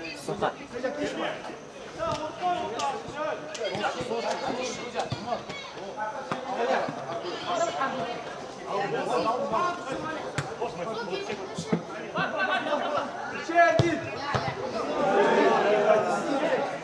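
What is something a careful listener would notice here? Young men shout and call to each other across an outdoor pitch.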